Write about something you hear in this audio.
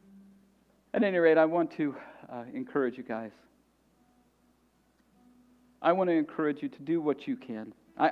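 A man speaks calmly through a microphone, with long pauses.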